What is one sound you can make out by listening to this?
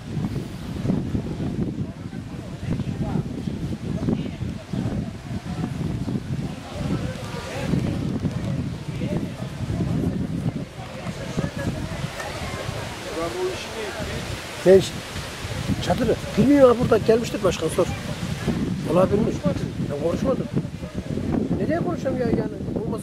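A crowd of men chatters outdoors.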